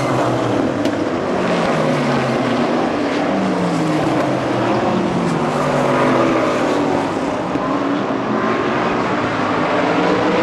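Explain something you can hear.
Race car engines roar loudly.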